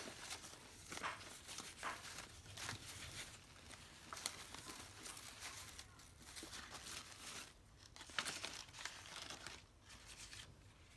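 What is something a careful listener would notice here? Paper rustles and crinkles as hands fold and handle it.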